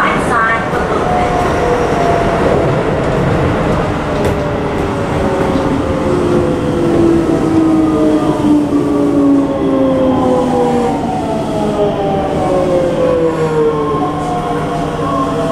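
A train's motor whines and slowly falls in pitch as the train slows down.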